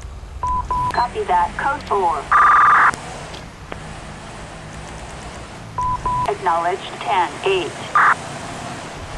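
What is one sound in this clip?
A police siren yelps in short bursts.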